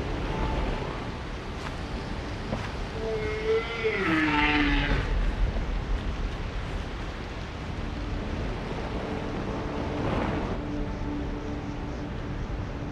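Flames roar and hiss steadily.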